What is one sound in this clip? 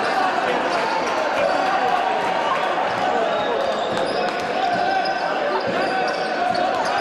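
A crowd cheers and chatters steadily in a large echoing hall.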